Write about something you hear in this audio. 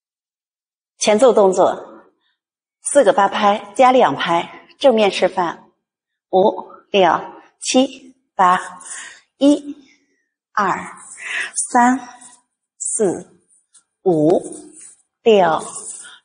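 A woman speaks calmly and clearly, in short phrases, close to a microphone.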